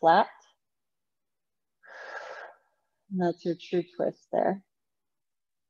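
A woman speaks calmly and slowly, close to the microphone.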